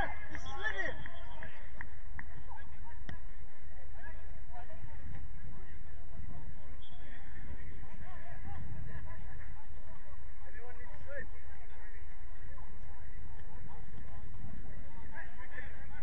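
Young men shout and call to each other across an open field, heard from a distance.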